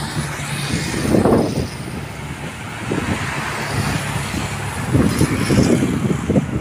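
Traffic rumbles steadily on a busy road.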